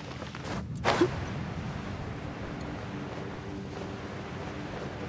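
Wind rushes past during a glide.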